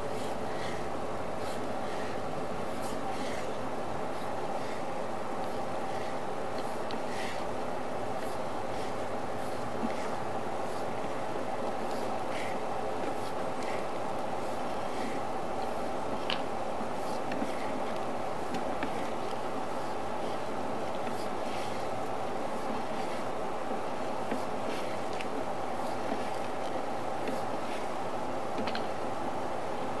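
Wheels rattle and scrape over a hard floor.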